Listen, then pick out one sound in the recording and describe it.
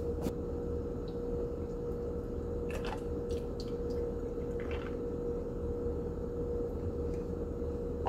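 Milk pours from a carton into a glass of ice.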